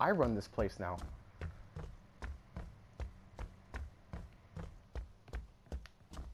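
Heavy footsteps thud steadily across a wooden floor.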